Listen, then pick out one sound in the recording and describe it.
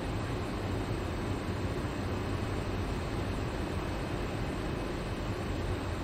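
A stopped train idles with a steady low hum.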